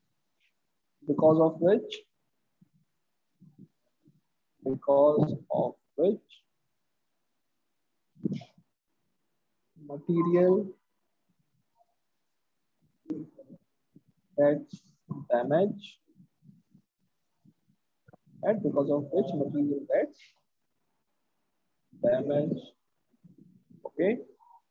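A man speaks calmly and slowly into a close microphone, with pauses between phrases.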